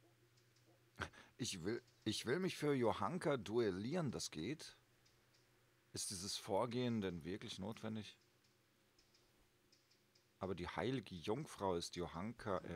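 A young man speaks calmly and close by, in short bursts.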